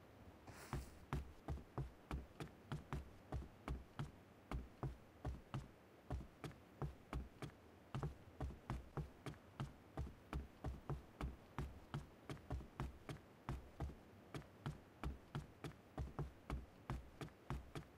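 Footsteps thud on hard ground in a quick, steady rhythm.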